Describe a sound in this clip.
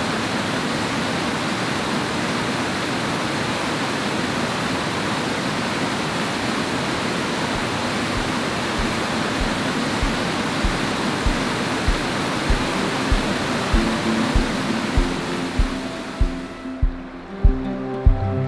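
A waterfall roars steadily as water pours over rocks.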